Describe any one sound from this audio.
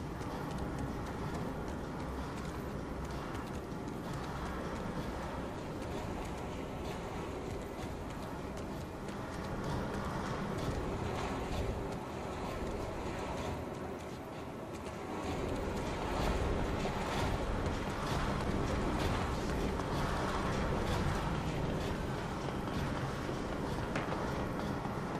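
Footsteps tap on hard floors and metal stairs.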